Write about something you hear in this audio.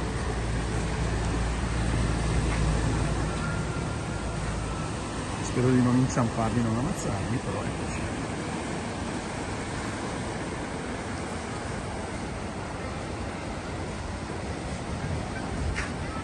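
Waves wash onto the shore in a steady roar.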